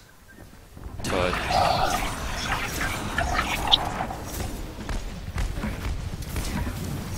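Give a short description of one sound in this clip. A freezing spray gun hisses and crackles in a video game.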